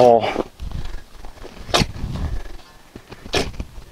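Loose dirt thuds as it is tossed onto a pile.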